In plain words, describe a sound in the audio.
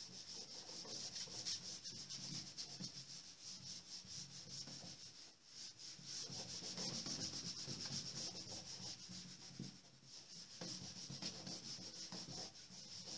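A marker scratches and squeaks on a whiteboard.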